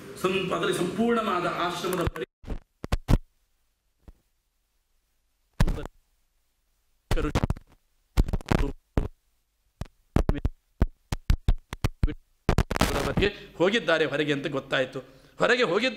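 A middle-aged man speaks with animation into a microphone, with pauses.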